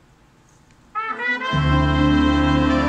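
A brass band starts playing loudly.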